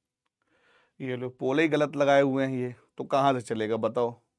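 A man speaks clearly and with animation, close to a microphone.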